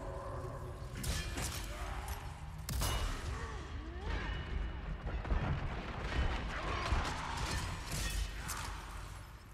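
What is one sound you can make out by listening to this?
A gun fires several loud shots in an echoing hall.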